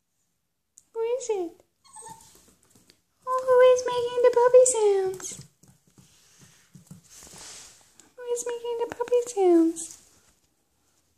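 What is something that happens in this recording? A small dog whines and howls close by.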